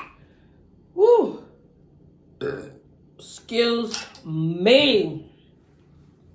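A young woman speaks expressively up close, with exclamations.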